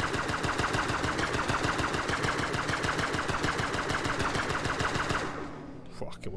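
A spacecraft engine roars loudly, then cuts off.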